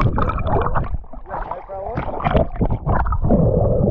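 Water splashes and churns as a fish thrashes at the surface.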